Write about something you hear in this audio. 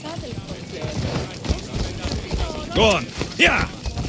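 A horse's hooves clop on stone.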